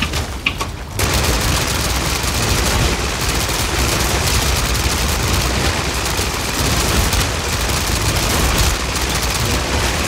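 Rapid gunfire blasts in a game.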